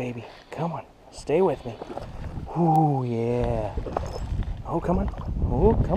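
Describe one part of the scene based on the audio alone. A small object splashes into still water close by.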